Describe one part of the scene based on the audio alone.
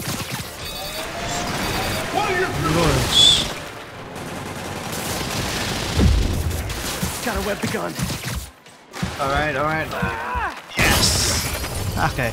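Explosions blast and rumble.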